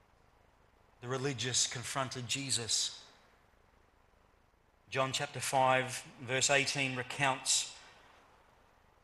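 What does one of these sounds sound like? A middle-aged man speaks calmly through a microphone in a room with some echo.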